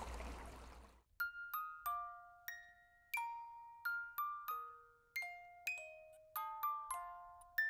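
A music box plays a tinkling melody.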